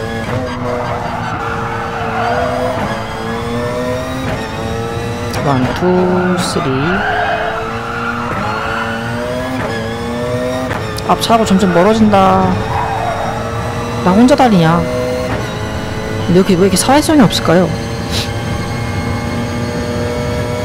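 A race car engine roars and revs up through the gears.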